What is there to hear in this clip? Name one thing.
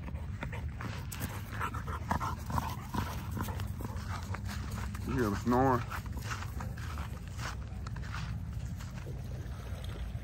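Dogs run through dry grass.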